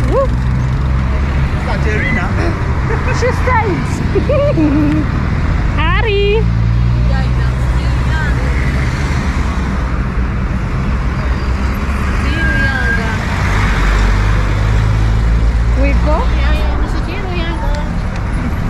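Traffic rumbles steadily along a busy street.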